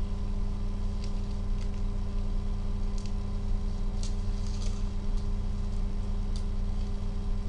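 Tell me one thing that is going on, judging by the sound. A plastic card holder taps and clicks in handling.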